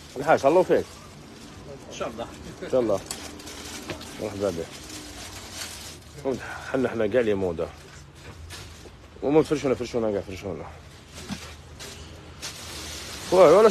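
A young man talks casually nearby, in short bursts.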